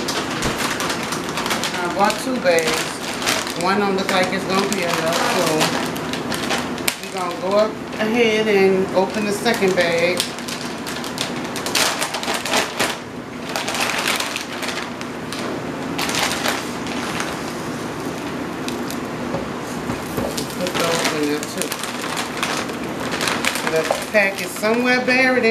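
Food sizzles and crackles in a hot frying pan.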